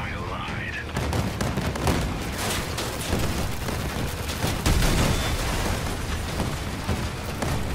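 Explosions boom and crackle in quick bursts.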